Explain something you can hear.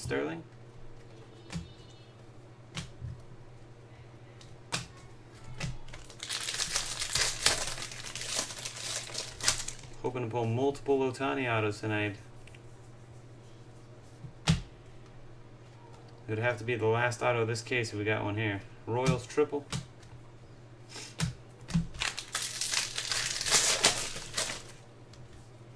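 Trading cards tap and slide against each other.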